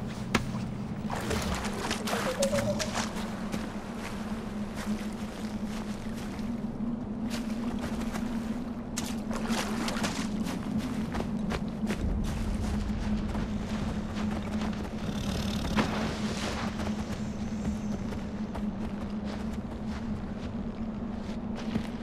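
Footsteps rustle through dry grass.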